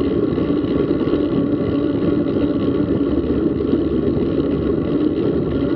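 Bicycle tyres roll steadily over a paved path.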